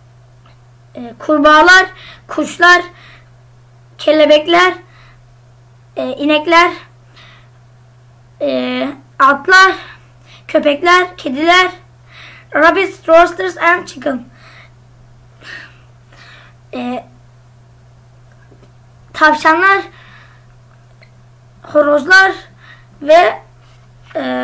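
A boy speaks with animation into a nearby microphone, in short bursts with pauses.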